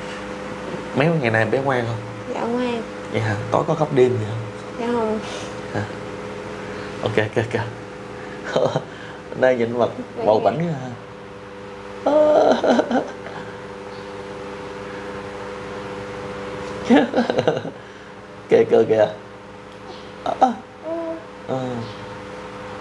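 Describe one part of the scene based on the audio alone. A young woman talks warmly and close to a microphone.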